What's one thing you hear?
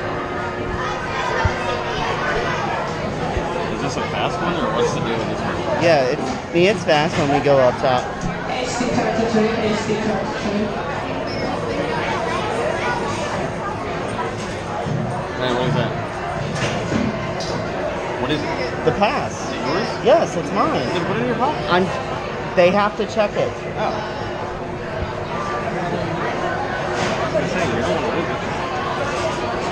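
People chatter and call out nearby in a lively crowd.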